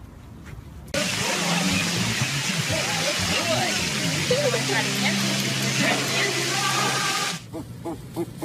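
Water splashes as a small dog paddles in a pool.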